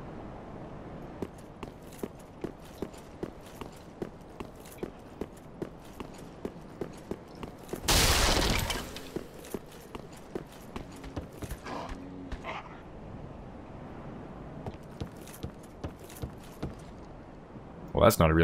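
Armoured footsteps clatter quickly on a hard floor.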